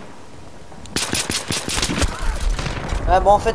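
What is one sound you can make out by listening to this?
Rapid gunfire bursts close by.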